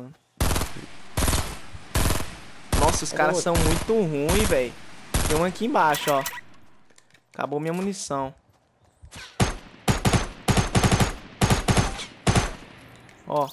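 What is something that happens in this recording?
A rifle fires single shots and short bursts.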